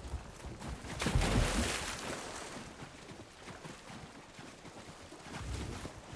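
Water splashes loudly as a mount plunges in and wades.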